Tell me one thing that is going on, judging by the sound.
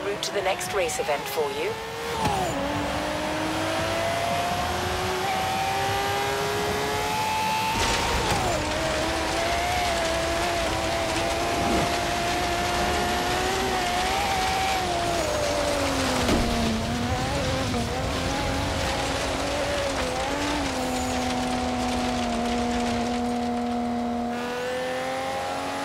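A racing car engine roars at high revs, rising and falling as gears change.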